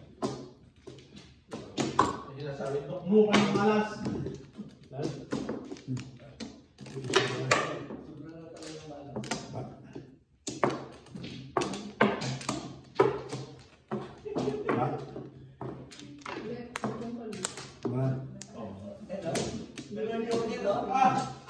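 Mahjong tiles clack and click against each other and the table.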